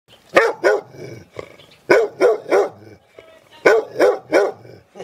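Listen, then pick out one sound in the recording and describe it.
A dog barks loudly and close by in quick bursts.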